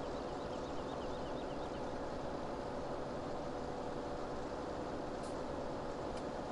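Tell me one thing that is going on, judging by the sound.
A tractor engine drones steadily.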